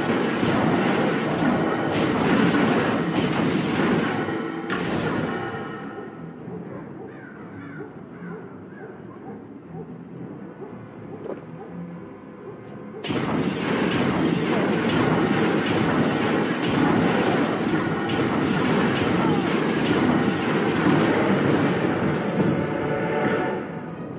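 Blades strike and clash repeatedly in a fight.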